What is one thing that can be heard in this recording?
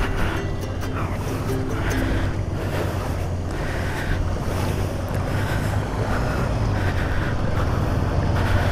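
A scooter engine idles steadily.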